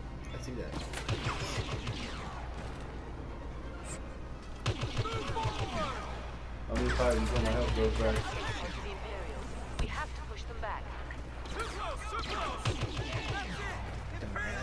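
Laser blasters fire in rapid bursts.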